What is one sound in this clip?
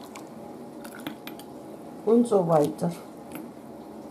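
Liquid pours from a ladle into a glass jar.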